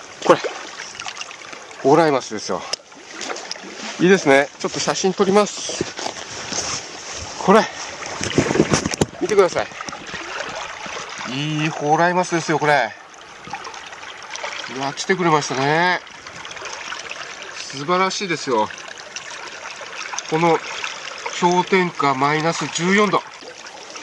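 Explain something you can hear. Water trickles and laps among rocks.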